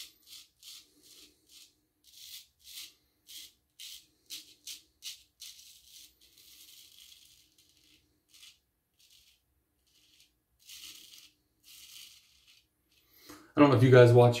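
A razor scrapes over stubble in short strokes.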